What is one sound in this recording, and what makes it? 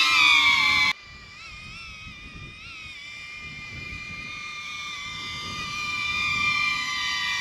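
Wind blows over open ground.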